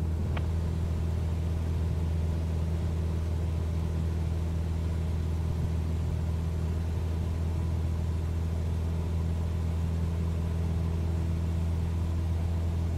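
A small plane's propeller engine drones steadily from inside the cabin.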